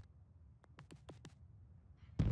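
Soft menu clicks tick quickly one after another.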